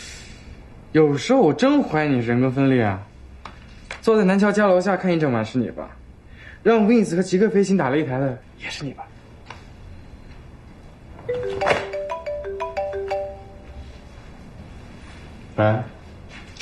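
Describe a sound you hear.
A young man speaks calmly and clearly nearby.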